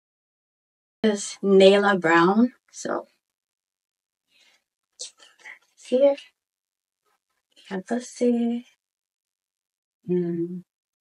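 A young woman speaks close up, with animation, in short bursts.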